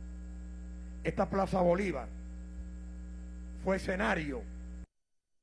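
An elderly man speaks forcefully into a microphone through loudspeakers.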